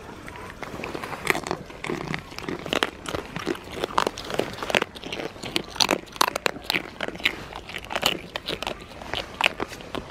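Goats chew and nibble close by.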